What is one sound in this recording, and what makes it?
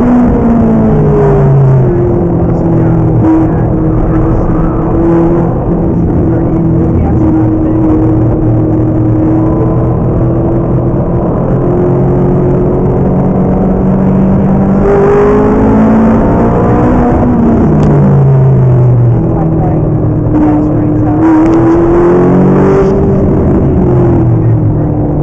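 Tyres rumble over the track.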